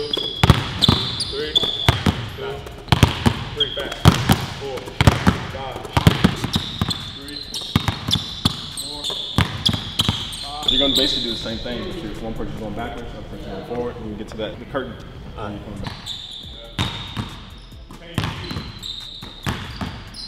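Basketballs bounce on a hard floor, echoing in a large hall.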